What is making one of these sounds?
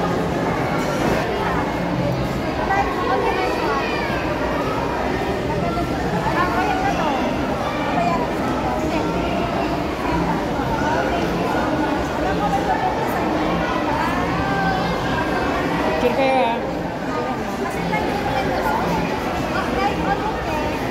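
A crowd of young people chatters in a large echoing hall.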